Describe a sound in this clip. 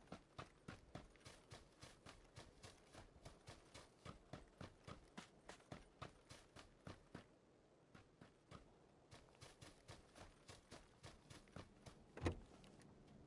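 Quick footsteps run over grass and dirt.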